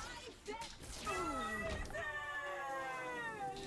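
A game jingle chimes with bright falling tones.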